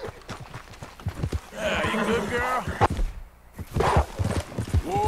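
A horse's hooves thud on grass at a trot.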